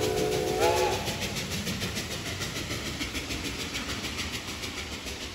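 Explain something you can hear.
Railway cars rumble and clatter along the tracks.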